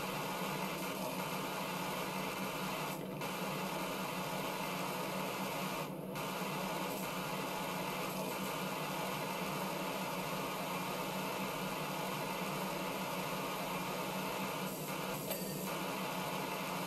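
A pressure washer sprays a steady, hissing jet of water.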